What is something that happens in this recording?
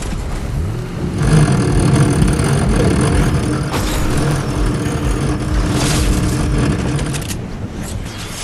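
A car engine roars as a car speeds along.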